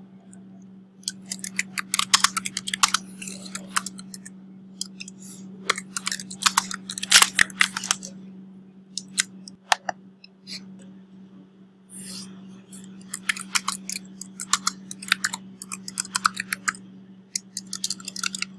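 Keys on a keyboard click in quick bursts.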